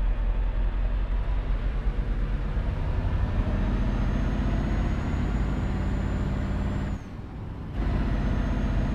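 A truck engine rumbles steadily at low speed, dropping briefly during a gear change.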